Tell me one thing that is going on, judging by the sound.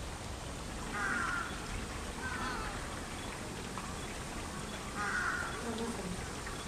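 A crow caws nearby.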